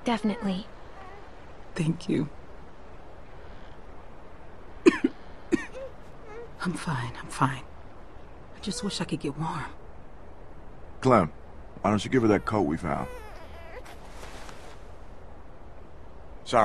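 A girl speaks softly, close by.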